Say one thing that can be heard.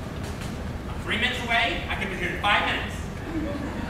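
A second man answers loudly from farther back.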